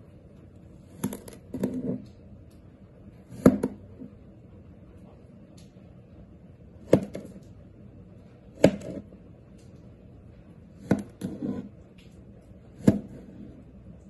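A knife chops through soft clay.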